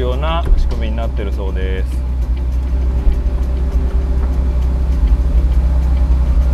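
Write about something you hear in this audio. An electric motor whirs steadily as a car's folding roof moves.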